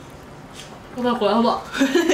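A young woman exclaims with delight close by.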